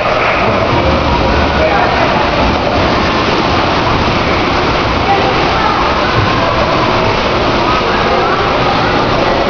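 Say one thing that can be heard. Water churns and splashes loudly in an echoing pool.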